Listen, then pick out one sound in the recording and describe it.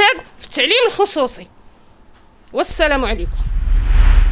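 A woman speaks close into a microphone with animation.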